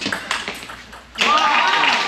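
A table tennis ball clicks off paddles and the table.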